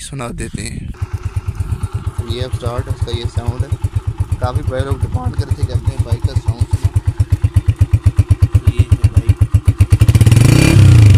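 A motorcycle engine idles close by with a quick, steady putter.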